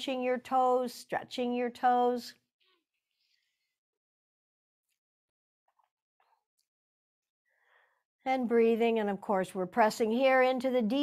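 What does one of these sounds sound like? A woman speaks calmly and slowly into a close microphone, pausing in between.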